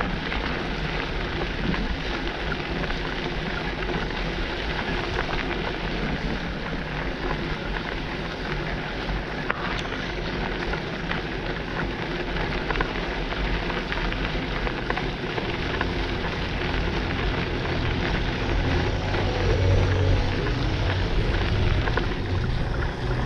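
Wind buffets the microphone, growing stronger toward the end.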